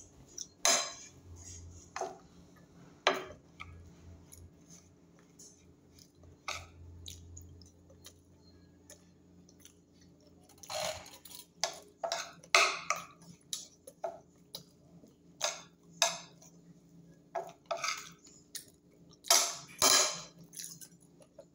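A middle-aged woman chews food with smacking sounds close by.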